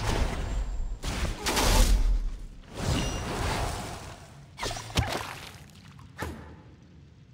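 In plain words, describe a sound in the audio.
A magic spell bursts with a loud whoosh.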